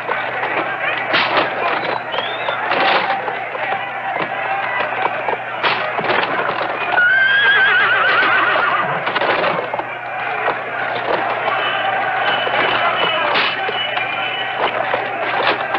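Bare feet pound on hard ground.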